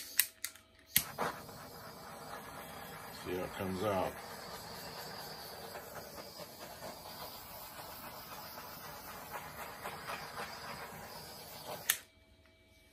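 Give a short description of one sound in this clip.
A butane torch roars steadily with a hissing flame.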